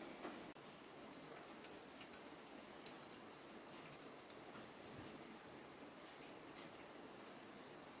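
Leafy greens rustle in a plastic bowl.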